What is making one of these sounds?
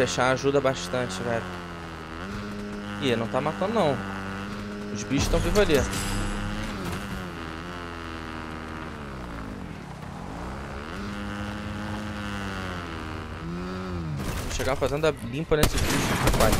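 A motorbike engine hums and revs up and down.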